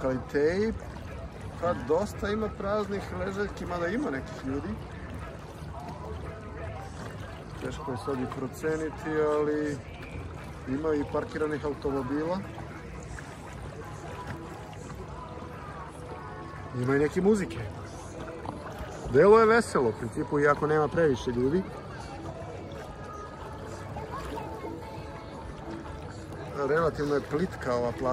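Small waves lap and splash gently outdoors.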